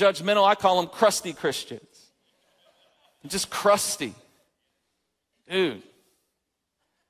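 A man speaks with animation through a microphone, in bursts with pauses.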